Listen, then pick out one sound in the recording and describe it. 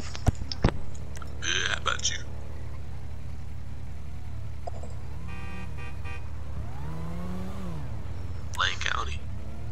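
Quad bike engines idle nearby.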